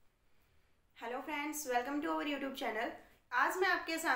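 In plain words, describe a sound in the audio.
A young woman speaks clearly and with animation, close to a microphone.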